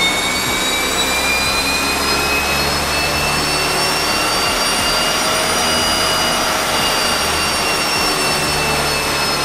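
A turbocharged Subaru flat-four engine pulls under load on a chassis dyno.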